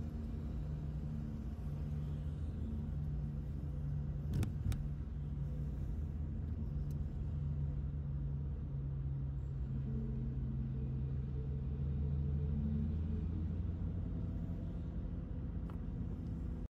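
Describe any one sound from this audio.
A car engine hums steadily from inside the cabin at low speed.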